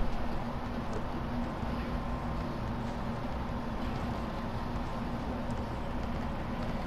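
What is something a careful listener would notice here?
A basketball bounces on hard pavement.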